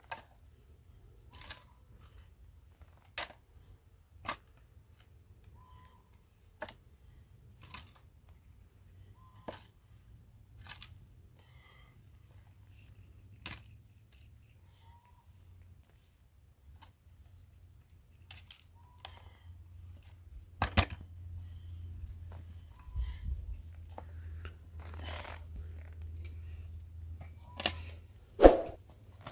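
A shovel scrapes and digs into stony soil, again and again.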